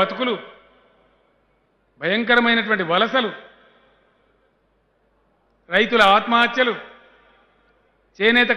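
A middle-aged man speaks calmly into a microphone in short phrases with pauses.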